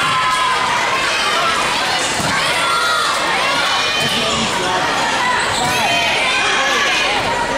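Sneakers squeak on a sports court floor in a large echoing hall.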